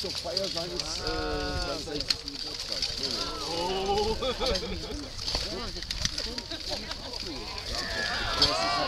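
Several men talk outdoors at a distance.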